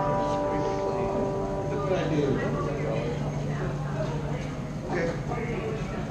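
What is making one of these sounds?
An electric guitar plays through an amplifier.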